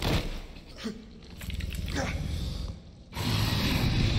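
A giant serpent hisses.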